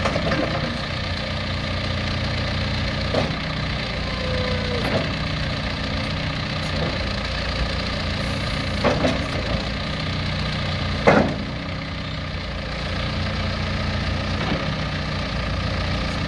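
Hydraulics whine as a loader bucket lifts and tilts.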